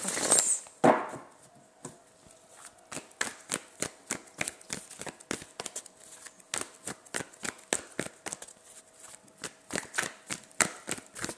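Playing cards riffle and slap softly as they are shuffled.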